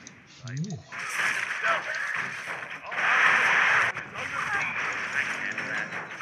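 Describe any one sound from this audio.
Weapons clash and spells crackle in a noisy battle.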